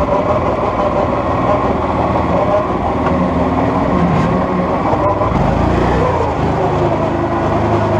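Water rushes over rocks in a stream.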